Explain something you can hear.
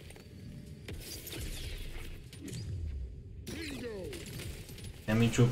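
Game sound effects chime and whoosh as a character levels up.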